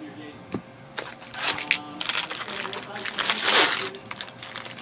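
Plastic wrappers crinkle and rustle.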